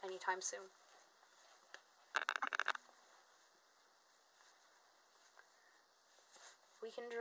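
Soft fabric rustles as small clothes are pulled on.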